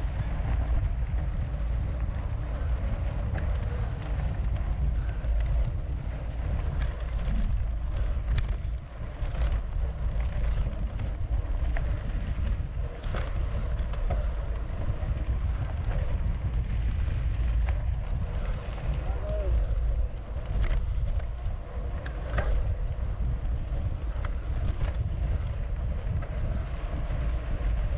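A bicycle chain clicks and rattles over bumps.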